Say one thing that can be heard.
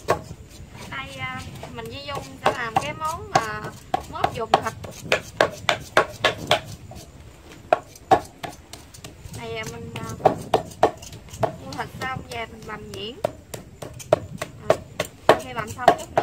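A knife chops meat on a board with quick, sharp knocks.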